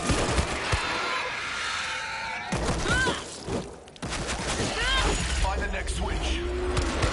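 Zombies growl and moan nearby.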